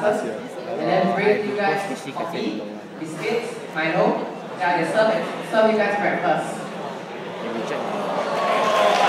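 A boy speaks with animation through a microphone and loudspeakers in an echoing hall.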